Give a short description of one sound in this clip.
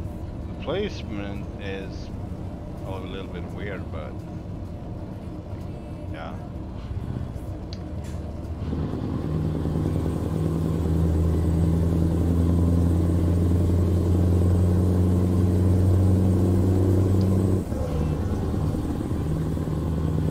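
A truck engine rumbles steadily, growing louder.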